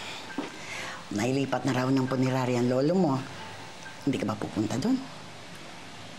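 An older woman speaks with animation, close by.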